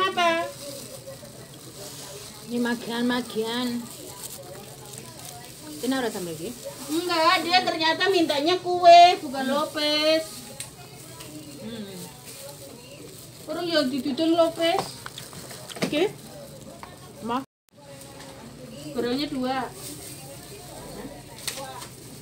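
Young women talk and chat with animation close by.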